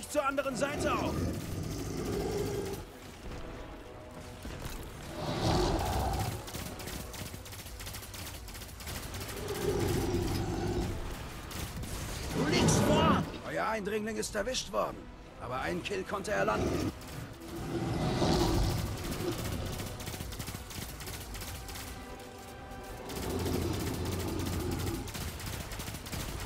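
Heavy weapon blasts boom and crackle in bursts.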